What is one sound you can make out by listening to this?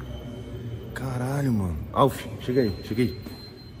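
A young man speaks intensely close by.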